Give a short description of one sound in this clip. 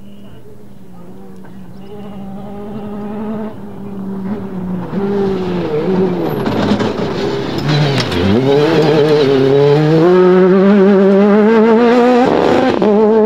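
A rally car engine roars closer, revving up and down hard.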